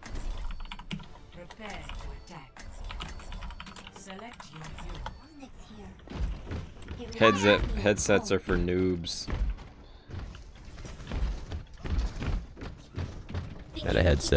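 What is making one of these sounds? A computer mouse clicks close by.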